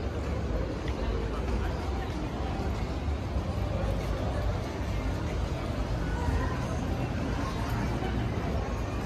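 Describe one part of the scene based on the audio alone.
Footsteps tap on a hard paved walkway close by.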